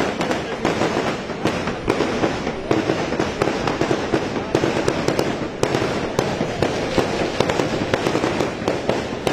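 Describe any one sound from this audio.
A crowd of men chatters loudly close by.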